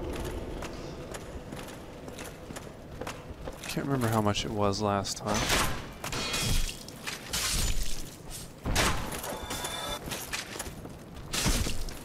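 Armored footsteps clank on stone.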